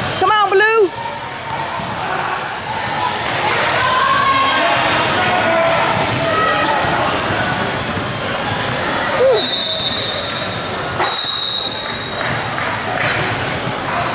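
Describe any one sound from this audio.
Players and spectators shout and chatter in a large echoing gym.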